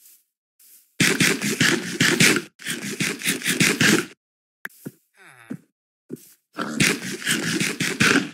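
A game character munches food with crunchy bites.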